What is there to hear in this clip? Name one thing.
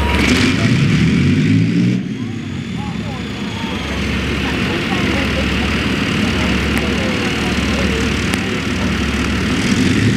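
Tank tracks clank and squeal as the tank moves.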